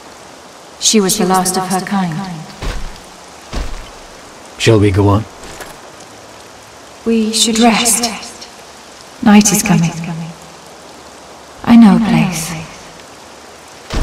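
A young woman speaks calmly and sadly.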